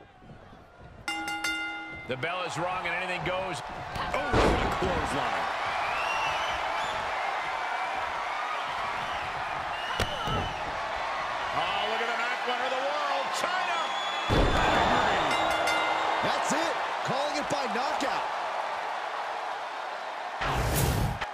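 An arena crowd cheers and roars.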